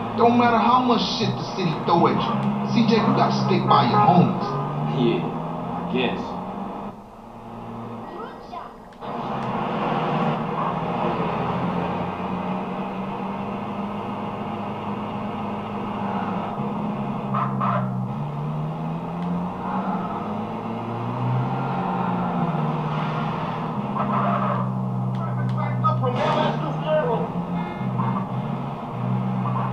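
A truck engine hums and drones through a television speaker, rising and falling in pitch as gears change.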